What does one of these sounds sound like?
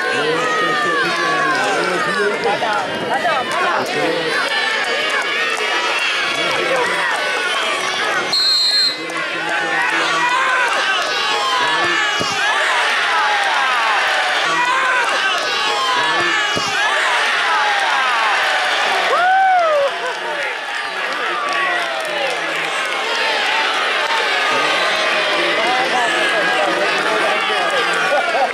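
A large outdoor crowd chatters, shouts and whistles excitedly throughout.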